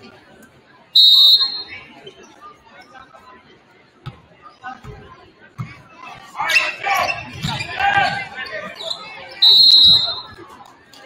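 A referee's whistle blows sharply, twice.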